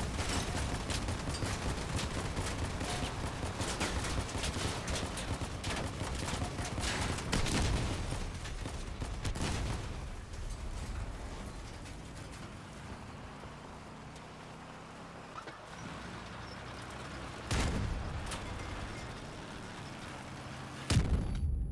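A vehicle engine rumbles and roars.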